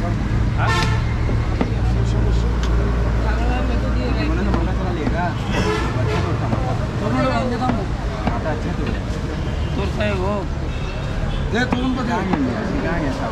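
A crowd of men chatter nearby outdoors.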